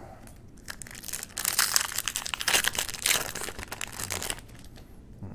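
A foil card pack crinkles and rips as it is torn open.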